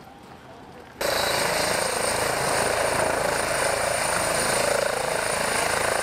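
A helicopter engine whines and its rotor whirs loudly close by.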